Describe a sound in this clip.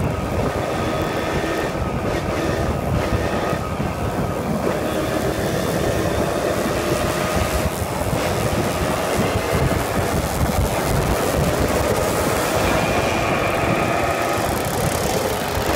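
Other motorbikes buzz nearby and pass.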